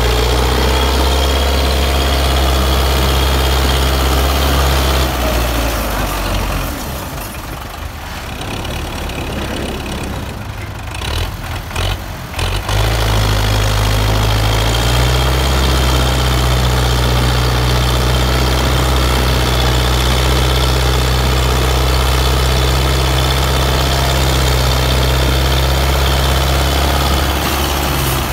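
A tractor's diesel engine roars and strains loudly close by.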